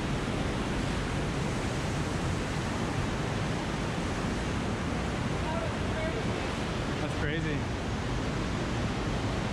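Rushing water flows loudly through a narrow echoing canyon.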